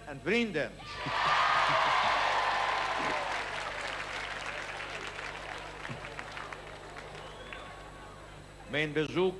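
A large outdoor crowd cheers and applauds.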